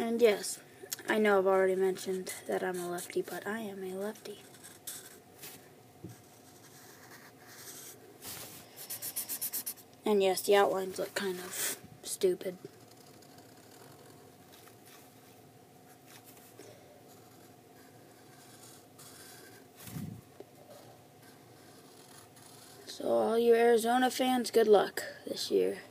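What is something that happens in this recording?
A marker scratches softly across paper.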